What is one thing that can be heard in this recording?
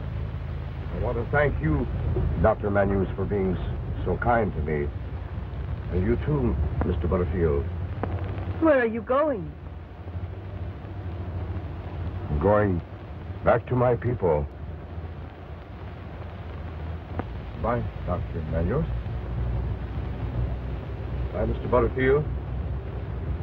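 A middle-aged man talks in a low, urgent voice.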